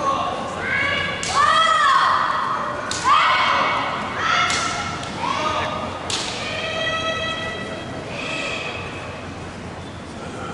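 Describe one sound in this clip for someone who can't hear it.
A group of young people shout loud, drawn-out calls that echo in a large hall.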